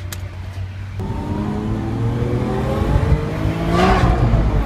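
A sports car engine revs up and roars as the car pulls away.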